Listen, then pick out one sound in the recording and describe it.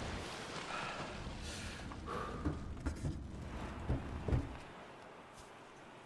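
Waves lap gently on open water.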